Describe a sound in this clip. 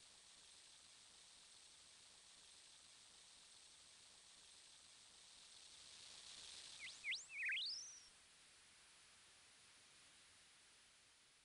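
Water flows gently in a stream.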